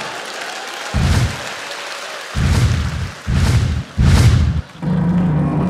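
Dancers stamp heavily on a stage.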